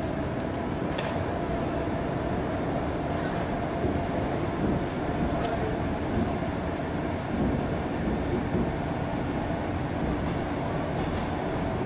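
A train rumbles steadily with a low hum.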